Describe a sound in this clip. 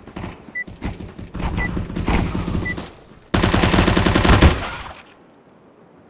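Rapid bursts of submachine gun fire crack loudly.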